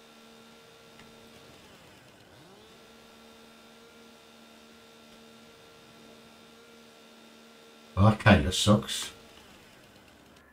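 A chainsaw idles with a steady hum.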